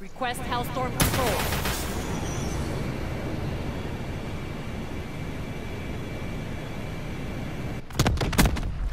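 An explosion booms and rumbles on for several seconds.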